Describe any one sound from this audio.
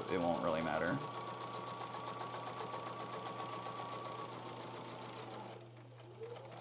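A sewing machine runs with a steady whir.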